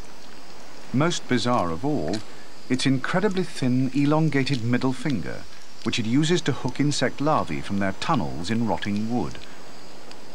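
A man speaks quietly and closely.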